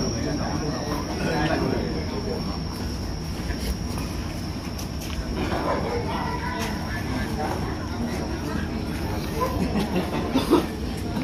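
Several men chat casually nearby outdoors.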